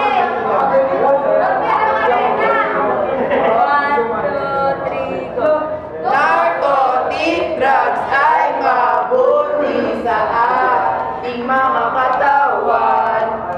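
A group of teenage boys and girls sing together close by, in harmony.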